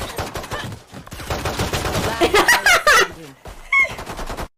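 A young woman laughs loudly and excitedly.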